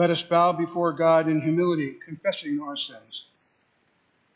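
A man reads aloud calmly through a microphone in a reverberant hall.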